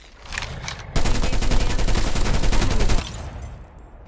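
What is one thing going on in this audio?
A gun fires in a rapid burst.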